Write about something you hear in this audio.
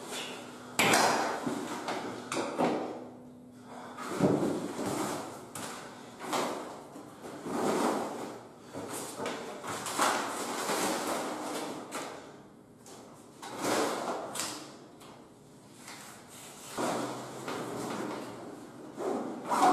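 A fabric bag rustles as things are packed into it.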